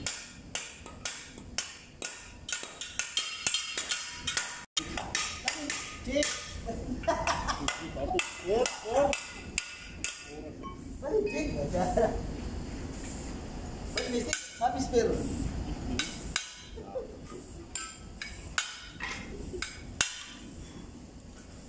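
Metal tools clink and tap against metal parts.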